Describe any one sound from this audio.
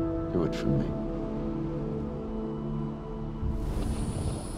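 A man speaks softly and pleadingly, close by.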